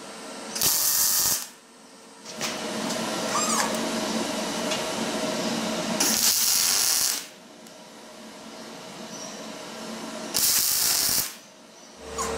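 A welding arc crackles and hisses in short bursts.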